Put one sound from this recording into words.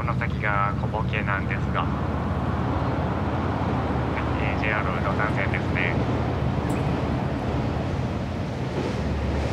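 A boat's motor drones steadily.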